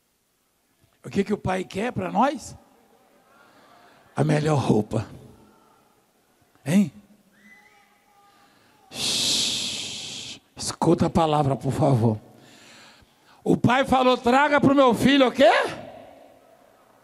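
A man speaks with animation through a microphone.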